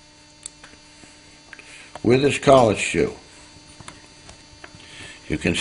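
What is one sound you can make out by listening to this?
Small metal parts click softly as they are handled.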